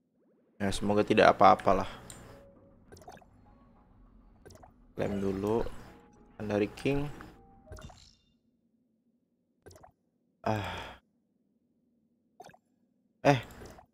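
A young man talks with animation into a microphone, in short bursts.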